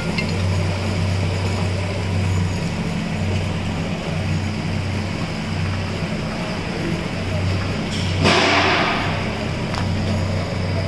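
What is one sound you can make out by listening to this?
A machine hums steadily with a low, droning whir.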